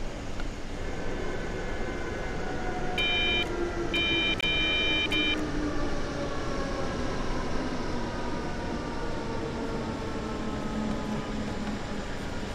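An electric motor whines, its pitch slowly falling as the train brakes.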